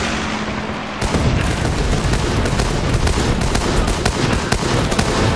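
Rapid gunshots crackle in a fierce battle.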